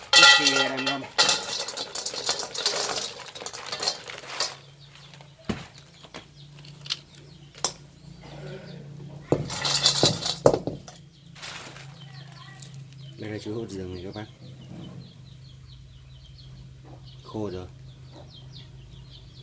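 A wood fire crackles under a pan.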